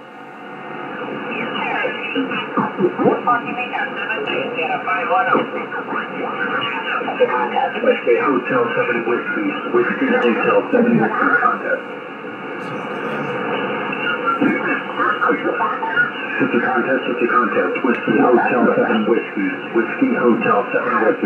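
A radio receiver plays warbling, crackly signals through its loudspeaker.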